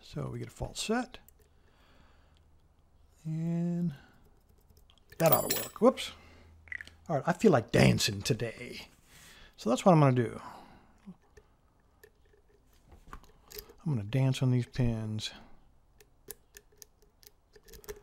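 Metal picks scrape and click softly inside a lock.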